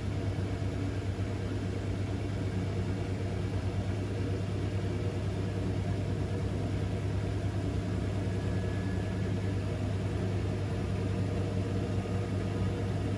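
Water and laundry slosh inside a washing machine drum.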